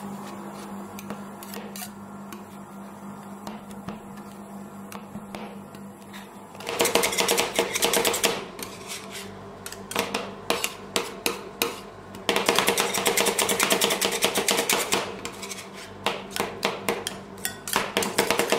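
Metal spatulas chop and scrape rapidly against a metal plate.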